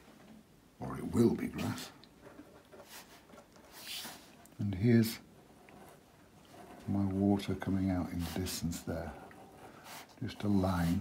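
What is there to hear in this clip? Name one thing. A pencil scratches lightly across paper.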